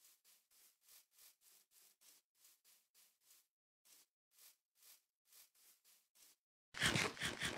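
Footsteps rustle through grass at a steady pace.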